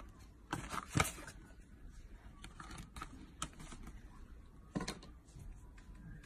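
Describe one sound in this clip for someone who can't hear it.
Plastic packaging crinkles and rustles in handling hands.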